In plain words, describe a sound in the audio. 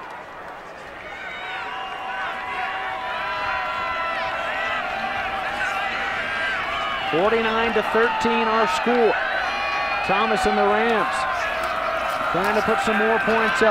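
A large stadium crowd cheers and roars, growing louder.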